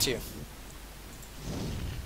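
A magic spell shimmers and crackles.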